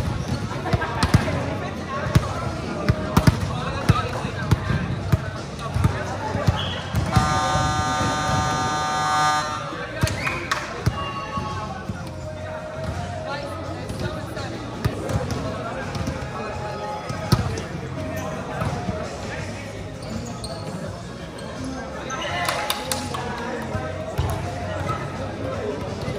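Several men shout and call out to each other across a court, echoing in a large hall.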